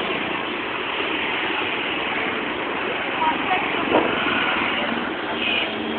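A motor rickshaw engine putters close by.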